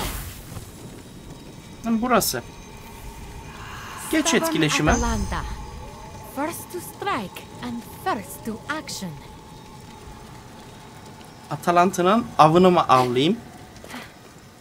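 A fire crackles in a brazier.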